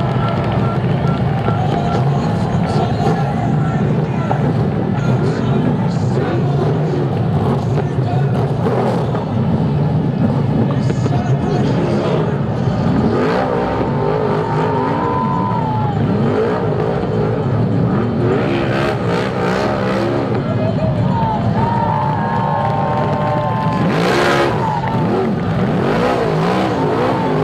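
Racing car engines roar loudly around a dirt track.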